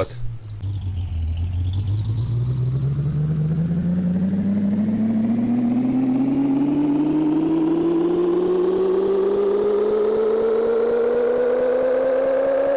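A truck engine revs steadily higher and higher.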